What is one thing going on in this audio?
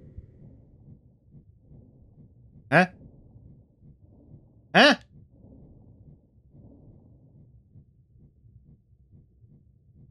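Water gurgles and bubbles as a figure swims underwater.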